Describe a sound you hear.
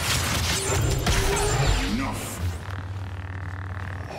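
A lightsaber hums and swings.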